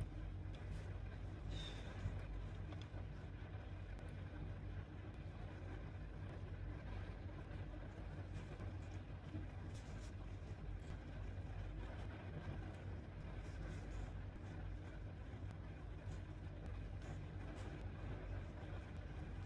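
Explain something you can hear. A crochet hook and yarn rustle softly close by.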